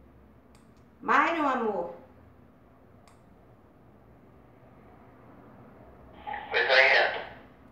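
A woman speaks briefly into a two-way radio, close by.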